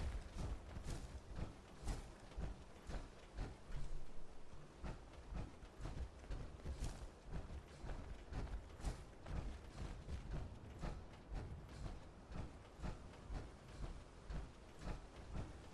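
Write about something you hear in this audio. Heavy metal footsteps thud steadily on dry ground.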